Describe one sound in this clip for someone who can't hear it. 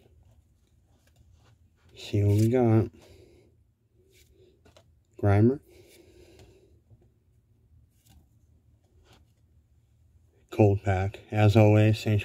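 Playing cards slide softly against each other.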